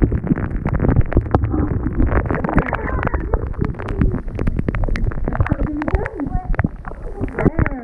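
Young children talk and giggle close by.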